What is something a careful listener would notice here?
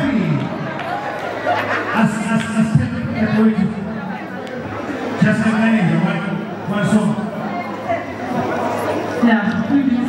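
A man speaks with animation into a microphone over loudspeakers in a large hall.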